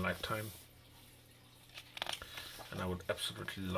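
A book page is turned with a papery rustle.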